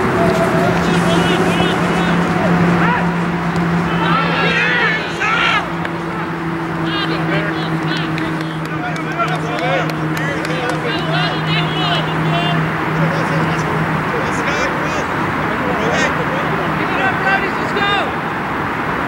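Men shout to each other across an open field, some distance away.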